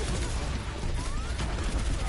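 A loud explosion bursts close by.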